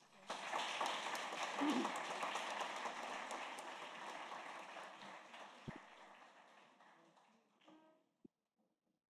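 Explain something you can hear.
An audience applauds in a large hall, and the applause slowly fades away.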